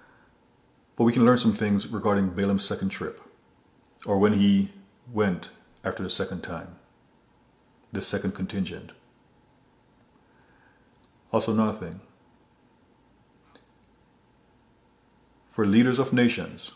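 A man speaks expressively and close to a microphone, in short bursts with pauses.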